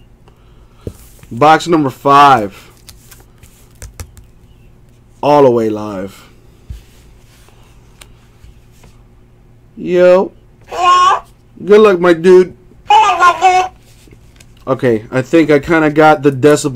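A cardboard box rubs and taps against hands.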